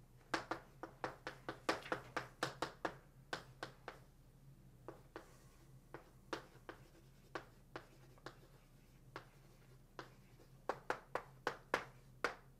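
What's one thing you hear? Chalk taps and scrapes sharply on a blackboard.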